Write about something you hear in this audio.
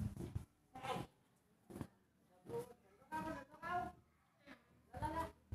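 A young boy speaks in short bursts, close by.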